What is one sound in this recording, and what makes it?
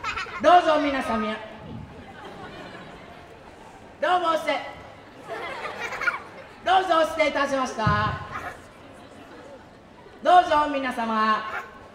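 A man speaks loudly through a loudspeaker in short, spaced-out bursts.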